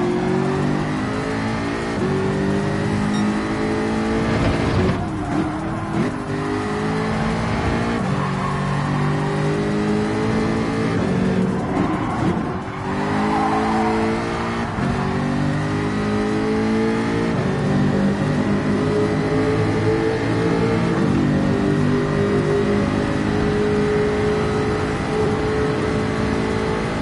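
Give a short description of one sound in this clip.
A racing car engine roars at high revs, rising in pitch and dropping as gears shift.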